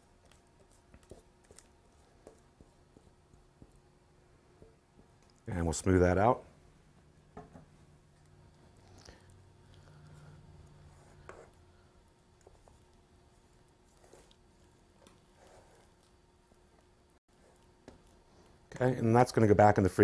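A spatula scrapes and spreads soft ice cream in a metal pan.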